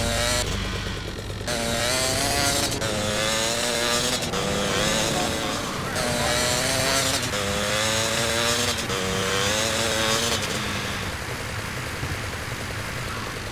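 A motorbike engine revs up and down steadily.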